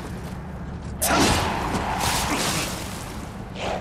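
A sword swings and strikes in a fight.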